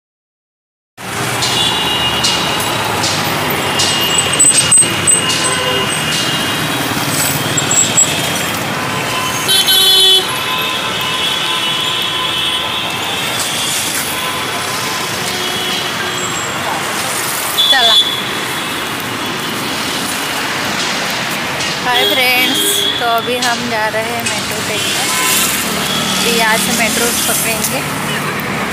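Steady city traffic hums close by outdoors.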